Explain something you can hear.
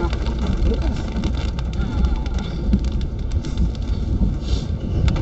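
A car engine rumbles low inside the vehicle.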